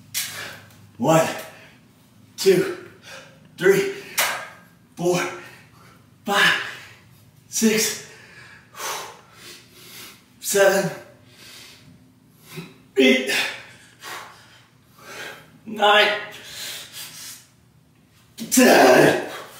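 A man exhales sharply and rhythmically with each pull-up, close by.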